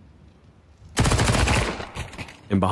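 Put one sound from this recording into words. Rapid gunfire bursts out loudly.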